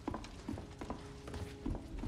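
A fire crackles in a fireplace.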